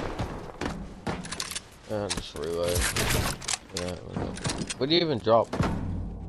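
Wooden walls are built with quick knocking clacks.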